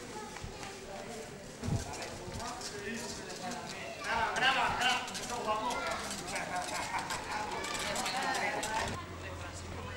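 Young men talk and laugh nearby outdoors.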